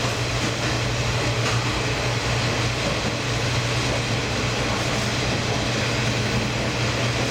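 A train rumbles steadily through a tunnel with a low, loud hum.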